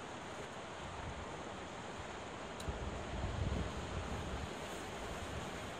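Wind blows across the microphone in gusts.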